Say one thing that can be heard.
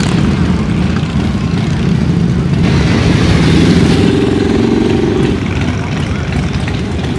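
A motorcycle engine rumbles loudly as it rides past close by.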